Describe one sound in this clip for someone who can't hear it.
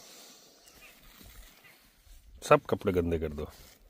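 Puppy paws scratch against fabric.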